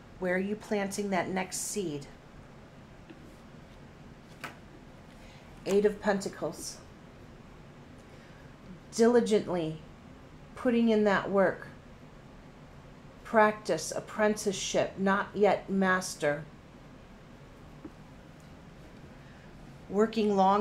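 A middle-aged woman speaks calmly and closely, with pauses.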